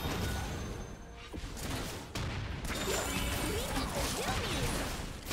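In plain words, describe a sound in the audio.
Magic spells zap and crackle in a fast fight.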